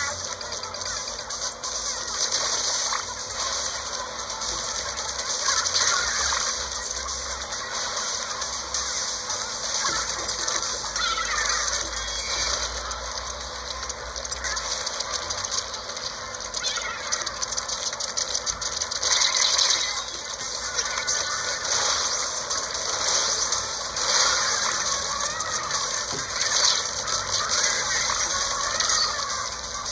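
Video game ink splashes and shooting effects play steadily.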